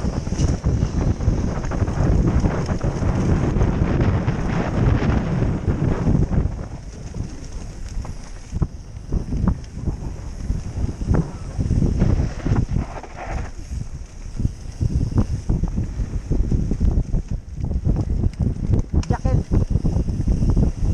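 A bicycle rattles and bumps over a dirt trail.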